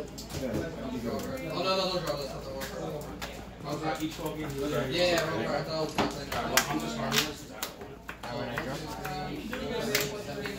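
Cards slide and tap on a table.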